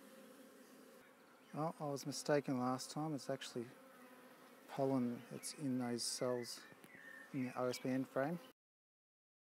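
Honeybees hum around an open hive.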